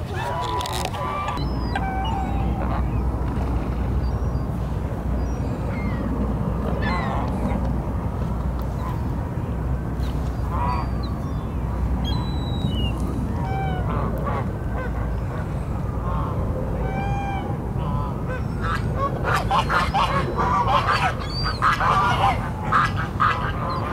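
Many gulls and water birds call over open water.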